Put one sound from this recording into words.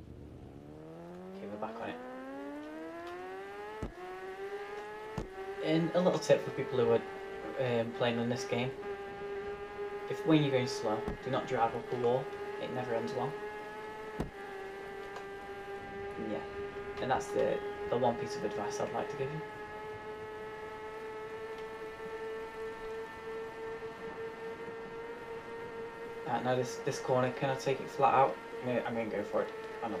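A motorbike engine revs up through the gears and then drones at high speed.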